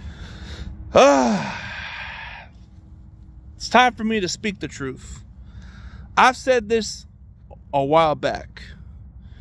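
A man speaks close to the microphone in short, animated bursts.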